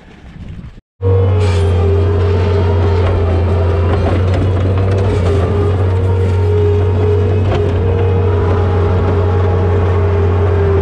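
A loader's diesel engine rumbles steadily.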